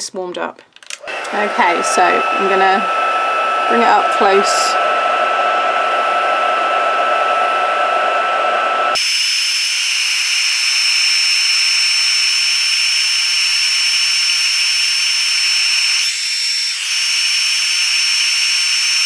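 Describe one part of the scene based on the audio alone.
A heat gun blows with a loud, steady whirring hiss.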